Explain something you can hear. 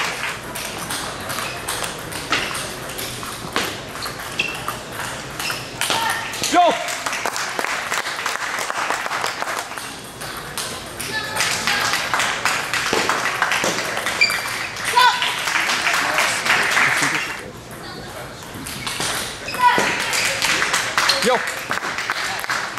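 A ping pong ball clicks back and forth across a table in a large echoing hall.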